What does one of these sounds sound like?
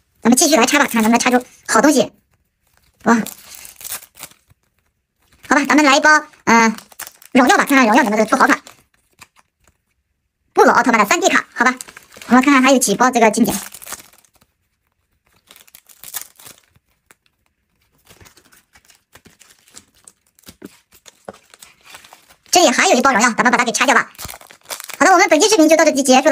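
Foil wrappers crinkle and tear as card packs are opened by hand.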